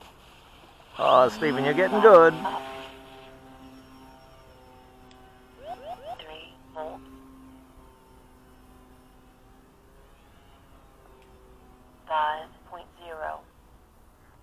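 A small model plane's motor whines steadily.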